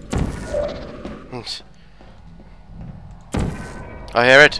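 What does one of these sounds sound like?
A sci-fi energy gun fires with a sharp, fizzing zap.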